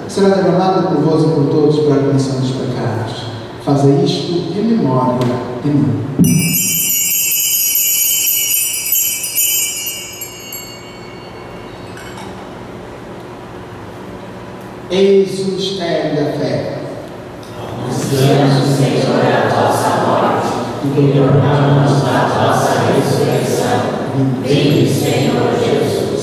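A man chants and speaks through a microphone in a reverberant hall.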